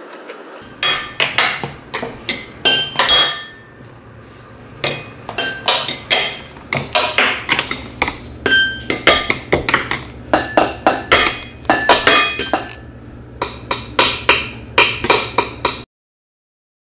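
Wooden drumsticks tap out quick rhythms on a tabletop.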